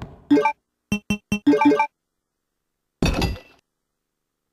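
Short electronic beeps click in quick succession.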